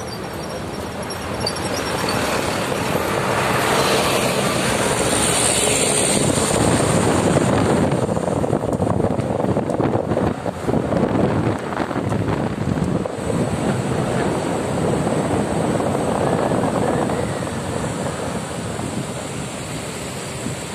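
Wind rushes loudly past a moving car.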